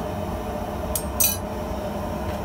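Metal tongs clink against an anvil.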